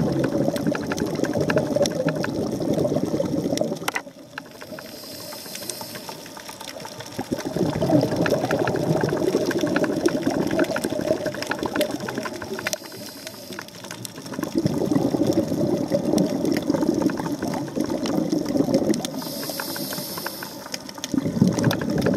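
Water rushes and churns in muffled bursts underwater.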